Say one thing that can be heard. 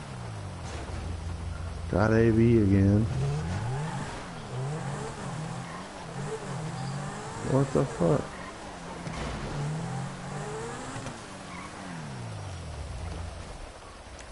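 A sports car engine revs as the car speeds along a street.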